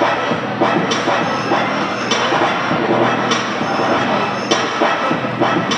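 Ice hockey skates scrape and carve across the ice in an echoing indoor rink.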